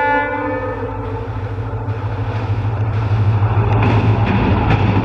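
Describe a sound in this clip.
A train rumbles closer along the tracks, growing louder.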